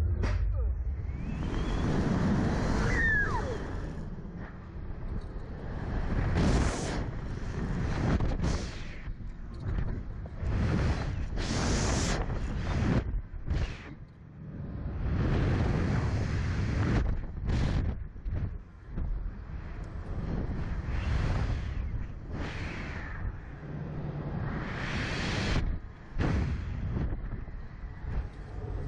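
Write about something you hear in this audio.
A young woman shrieks and laughs close by.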